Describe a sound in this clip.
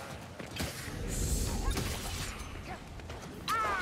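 Metal blades scrape and clink as weapons are drawn.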